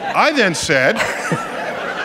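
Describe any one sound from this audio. An older man laughs.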